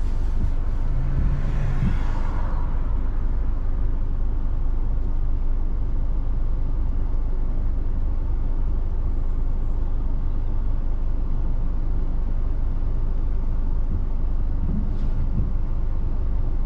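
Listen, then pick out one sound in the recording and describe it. A car engine hums steadily with road rumble from inside the car.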